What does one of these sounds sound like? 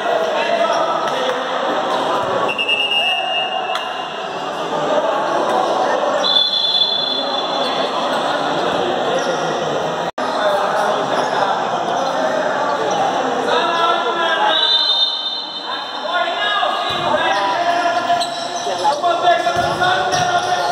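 Men shout and call out across an echoing court.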